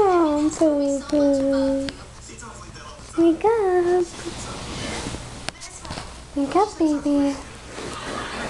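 A dog whines and whimpers close by in high, wavering cries.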